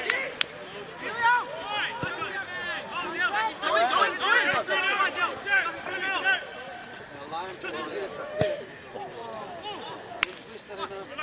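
A football is kicked with a dull thump.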